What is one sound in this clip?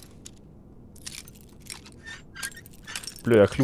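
A lock pick scrapes and clicks inside a metal lock.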